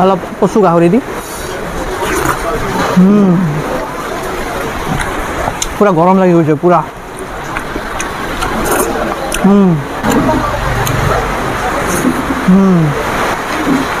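A young man hums with pleasure while eating, close by.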